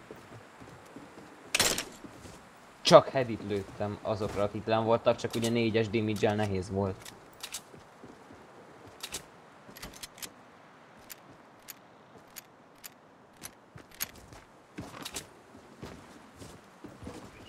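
Footsteps tap on a roof.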